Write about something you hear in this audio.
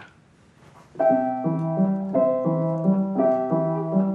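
A piano plays a simple tune.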